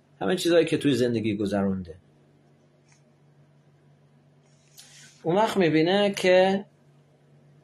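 A middle-aged man speaks calmly and closely into a microphone, in short phrases with pauses.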